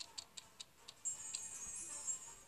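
A bright chime rings out as a reward is revealed.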